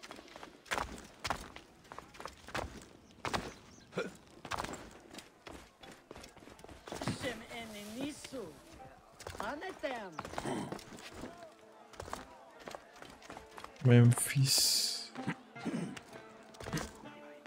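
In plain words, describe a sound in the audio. Footsteps thud and scuff on stone as someone runs and climbs.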